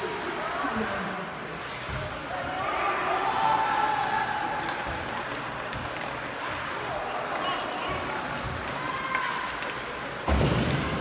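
Skates scrape and hiss on ice in an echoing rink.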